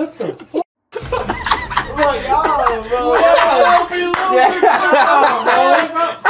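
A young man laughs loudly and excitedly close by.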